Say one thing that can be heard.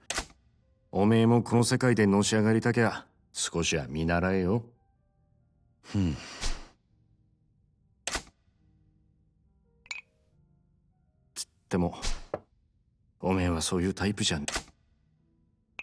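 A second man speaks in a relaxed, slightly mocking tone.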